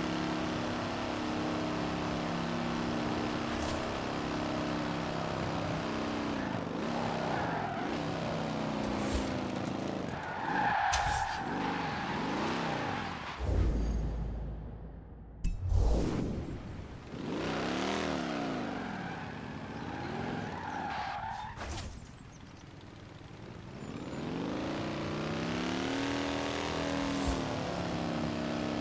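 A car engine roars and revs up and down through gear changes.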